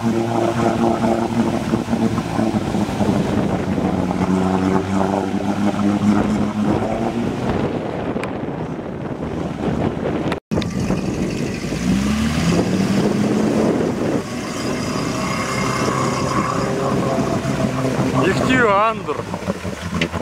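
A UAZ-469 off-roader's petrol engine strains under load.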